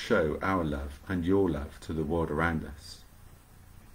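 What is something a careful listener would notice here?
A middle-aged man speaks calmly and close to a microphone, as if on an online call.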